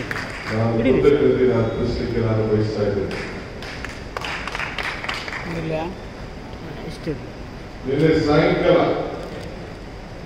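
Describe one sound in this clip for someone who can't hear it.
A man speaks forcefully into a microphone, heard through loudspeakers in a large echoing hall.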